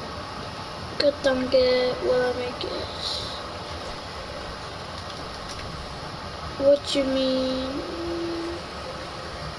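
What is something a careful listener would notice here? A boy speaks briefly close to a microphone.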